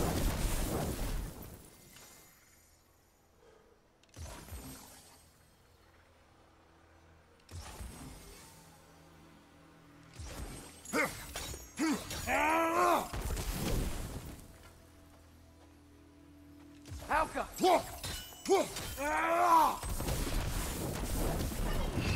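A fireball bursts with a roar.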